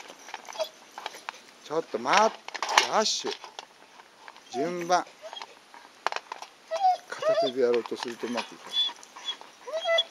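Dog treats rattle in a metal bowl.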